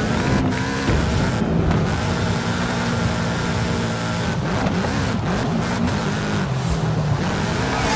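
A car engine revs loudly, rising and falling as the car drifts.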